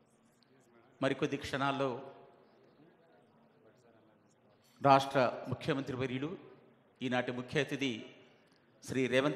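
A man speaks loudly through a microphone and loudspeakers in an echoing hall.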